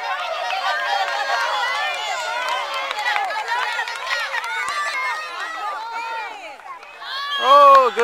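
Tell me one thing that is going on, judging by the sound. A crowd of adults and children cheers and calls out outdoors.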